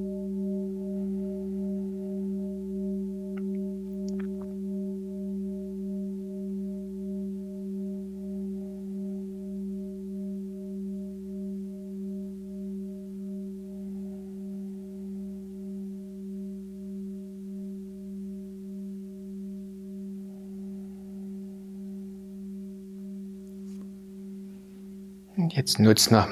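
A singing bowl hums steadily with a slow wavering pulse.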